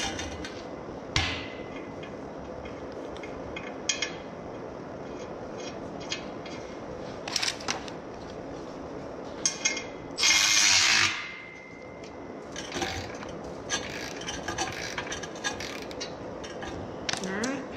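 Metal clanks and rattles against a jack stand.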